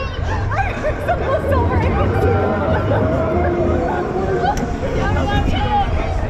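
A young woman laughs and shrieks close by.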